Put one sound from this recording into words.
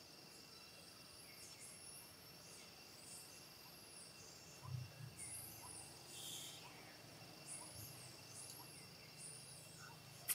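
A baby monkey squeals in high, rising and falling cries.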